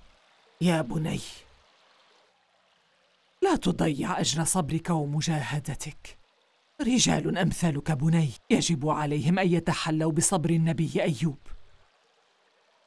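An elderly woman speaks sternly and close by.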